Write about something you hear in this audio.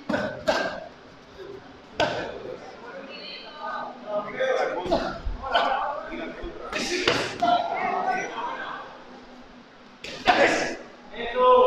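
Boxing gloves thud on an opponent in quick bursts.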